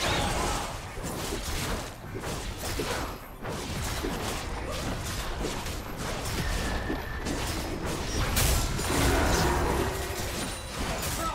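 Game fighting effects clash, whoosh and crackle.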